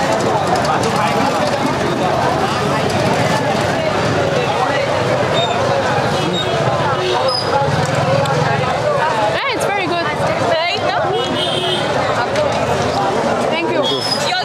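A crowd chatters all around.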